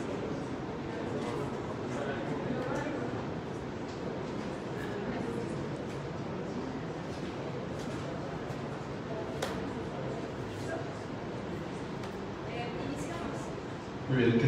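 Many people murmur and chat in a large echoing room.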